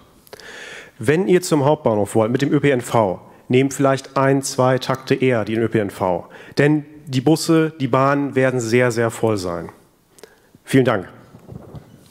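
A young man speaks with animation through a microphone in a large hall.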